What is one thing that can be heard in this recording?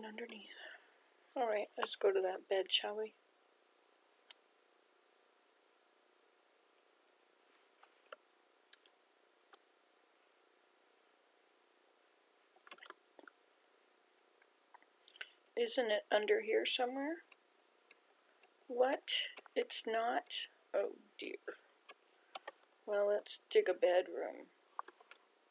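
An elderly woman talks calmly into a microphone, in short bursts.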